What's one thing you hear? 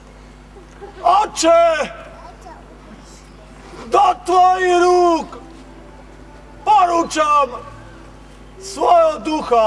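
A young man cries out loudly in anguish, close by, in bursts with pauses between.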